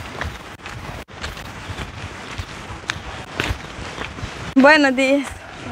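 Footsteps crunch on gravel and stones.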